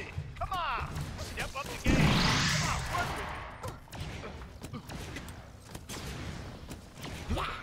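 A weapon fires with a buzzing energy beam.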